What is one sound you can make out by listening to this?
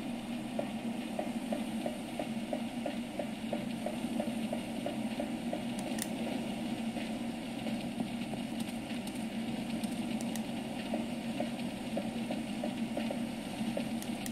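Footsteps clatter quickly on a metal walkway through a small speaker.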